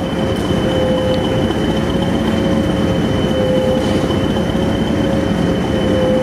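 A diesel-electric multiple unit engine idles at the platform.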